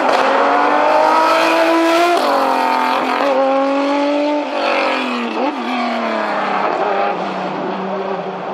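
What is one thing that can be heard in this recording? A racing car engine screams at high revs, shifting gears as the car speeds past.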